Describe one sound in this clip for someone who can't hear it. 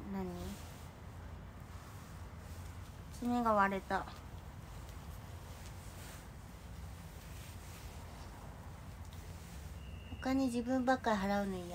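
A young woman speaks close by in short bursts, with a high, lively voice.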